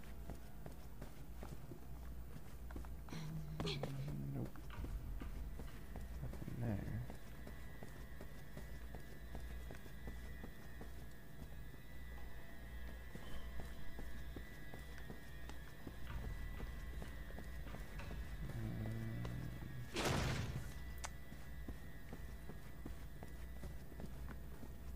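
Footsteps pad steadily across a carpeted floor.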